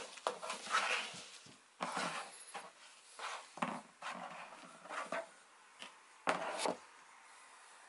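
Foam pads tap and slide on a hard board.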